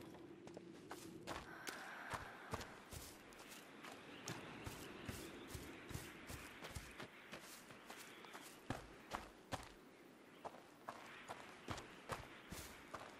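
Footsteps crunch softly on grass and gravel outdoors.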